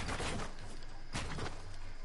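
Wooden walls are snapped into place with quick knocks.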